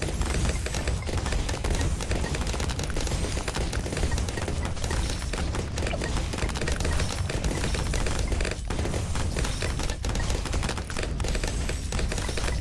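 Cartoon bombs burst in rapid succession in a video game.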